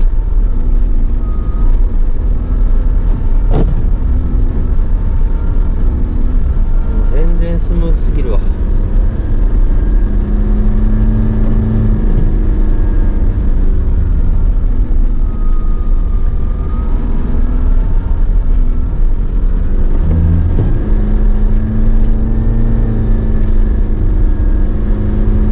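Tyres crunch and rumble over packed snow.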